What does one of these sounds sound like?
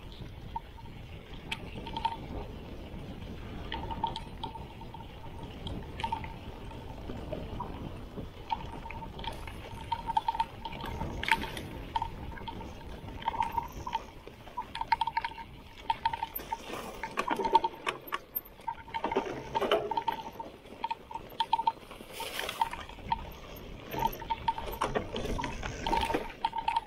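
A bicycle frame and chain rattle and clatter over bumps.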